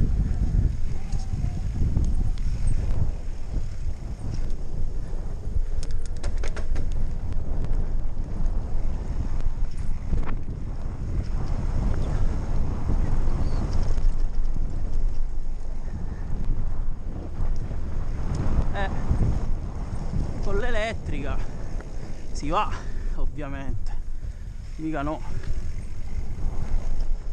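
Wind rumbles and buffets loudly past a fast-moving rider.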